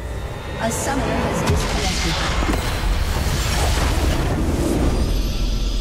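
Magic spells blast and crackle in a fierce battle.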